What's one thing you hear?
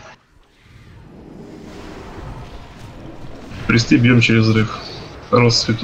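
Magic spells whoosh and crackle during a fantasy battle.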